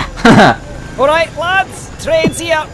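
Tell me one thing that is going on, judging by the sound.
A man's cartoon voice exclaims in a high, excited tone.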